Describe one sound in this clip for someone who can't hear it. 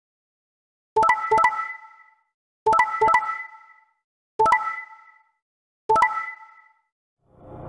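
Short electronic beeps sound one after another.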